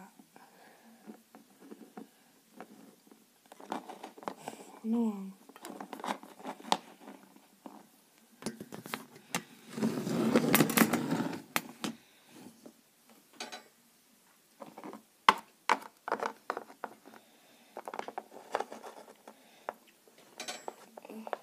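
A small plastic toy taps on a hard surface.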